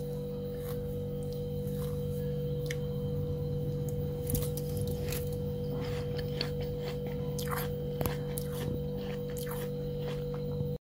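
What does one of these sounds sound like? A freezer hums steadily.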